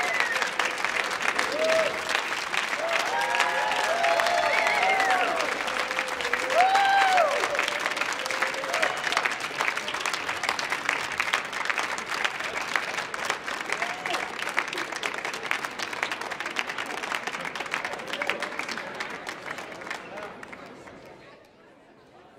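An audience applauds loudly in a large hall, then the clapping fades away.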